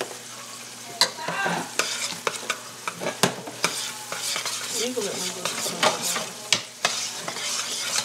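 A metal spoon scrapes and clinks against a pot while stirring thick pasta.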